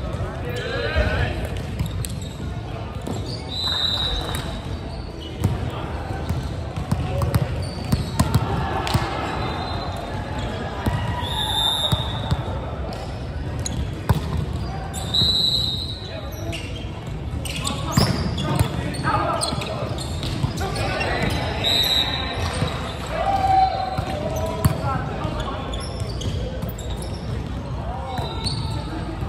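A volleyball thuds off hands and arms in a large echoing hall.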